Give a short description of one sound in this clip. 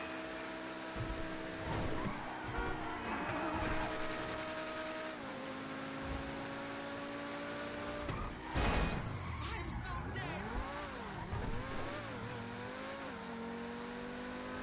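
A sports car engine roars at speed.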